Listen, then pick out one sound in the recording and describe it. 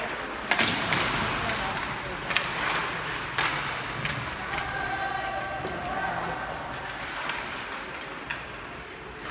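Hockey sticks clack sharply against a puck.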